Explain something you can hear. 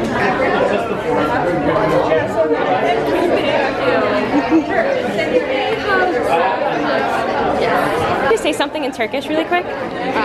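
Young women talk and laugh excitedly close by.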